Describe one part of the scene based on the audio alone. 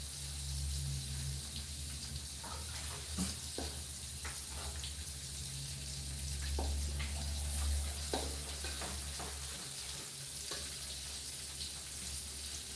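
A metal spatula scrapes and taps against a metal wok.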